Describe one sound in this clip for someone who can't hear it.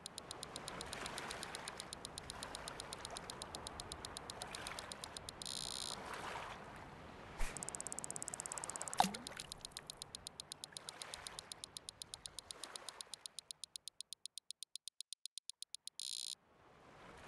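A fishing line reels in with a rapid clicking.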